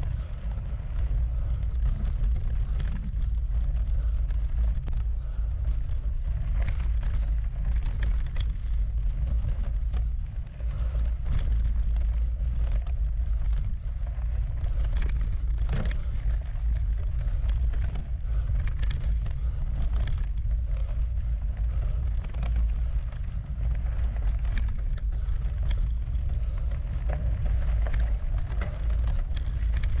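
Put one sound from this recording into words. Wind rumbles loudly against the microphone.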